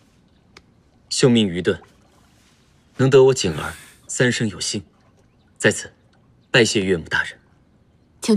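A young man speaks politely in short phrases.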